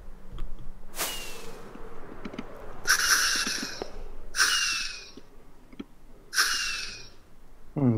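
A firework rocket whooshes in short bursts.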